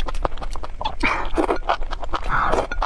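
A young woman slurps noodles close up.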